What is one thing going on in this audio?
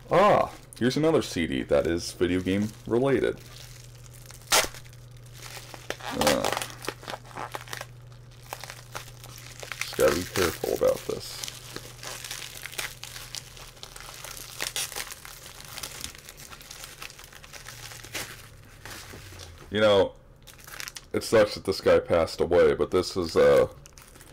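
Plastic wrapping crinkles as a man unwraps a disc case.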